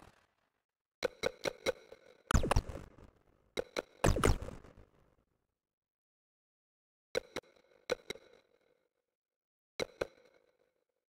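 Short electronic menu clicks and chimes sound in quick bursts.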